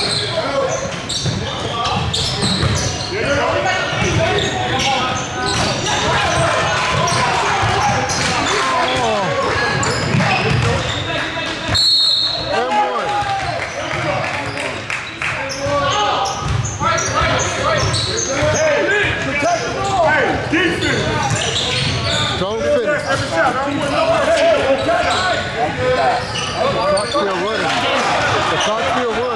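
Basketball shoes squeak sharply on a wooden court.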